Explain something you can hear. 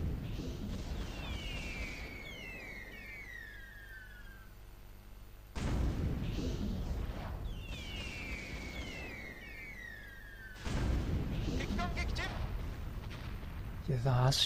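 Gunfire rattles in quick volleys.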